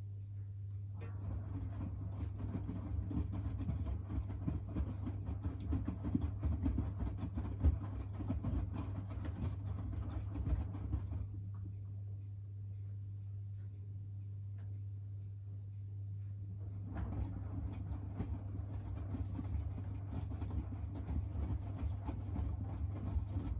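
Laundry tumbles and sloshes in a washing machine drum.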